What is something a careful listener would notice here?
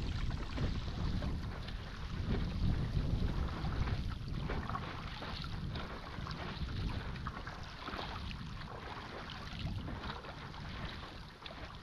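A boat's wake churns and splashes on open water.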